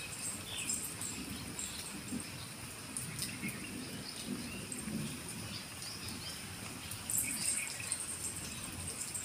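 Heavy rain falls steadily outdoors, splashing on the wet ground.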